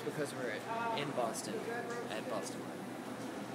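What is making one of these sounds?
A young man speaks casually close by.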